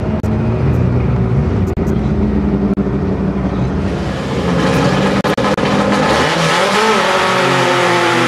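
Race car engines rumble and roar loudly nearby.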